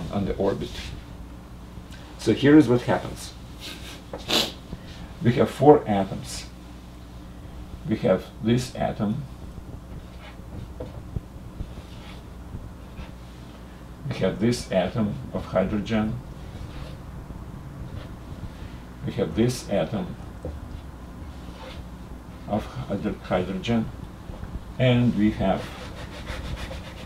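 An older man speaks calmly in short phrases, close to the microphone.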